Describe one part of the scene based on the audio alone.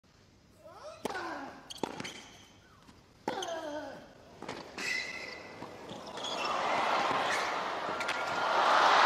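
A tennis ball is struck sharply back and forth.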